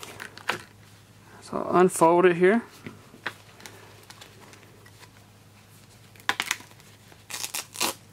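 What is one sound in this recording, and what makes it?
Fabric rustles softly as a bandage is unfolded.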